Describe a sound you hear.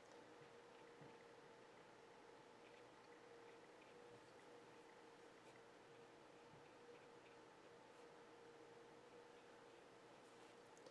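A brush taps and strokes softly on paper.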